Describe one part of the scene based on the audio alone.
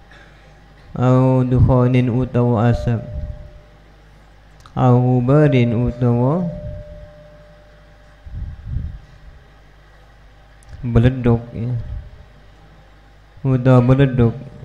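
A man chants in a melodic voice into a microphone, in short phrases with pauses.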